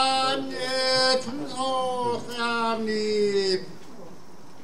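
A man calls out in a long, drawn-out chanting voice over a loudspeaker outdoors.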